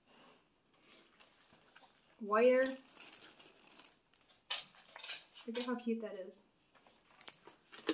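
Cardboard packaging rustles and crinkles in a woman's hands.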